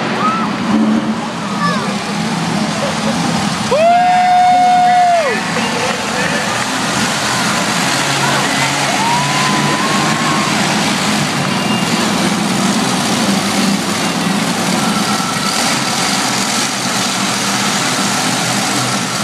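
A monster truck engine roars loudly in a large echoing arena.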